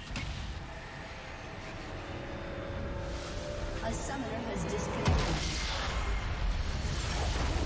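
Game spell effects crackle and whoosh.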